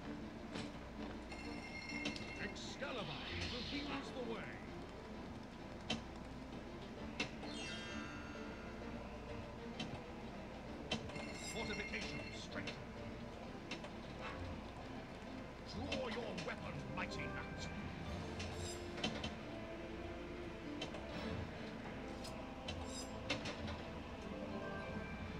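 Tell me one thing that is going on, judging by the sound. A pinball game rings with bells and jingles as the ball hits targets.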